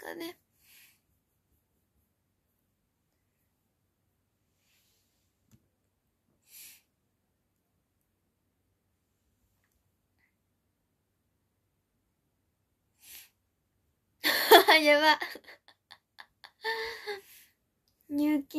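A young girl speaks softly close by.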